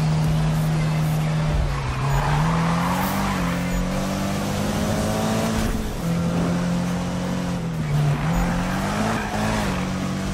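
Tyres hiss and screech on a wet road.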